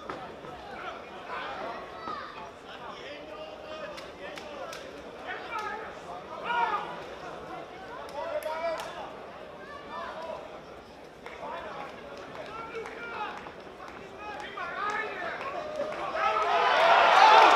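Punches thud against a boxer's gloves and body.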